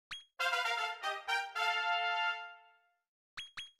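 A short, bright game jingle plays.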